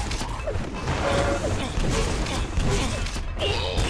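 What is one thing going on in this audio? Energy weapons fire with sharp zapping bursts.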